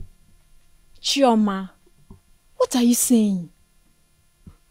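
A young woman answers with animation, sounding upset.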